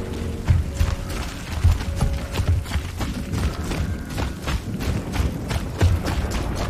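Heavy boots clomp steadily on a hard, wet floor.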